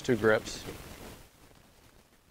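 A man speaks calmly through a close microphone.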